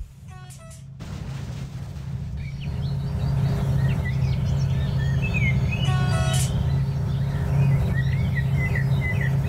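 A diesel locomotive rumbles.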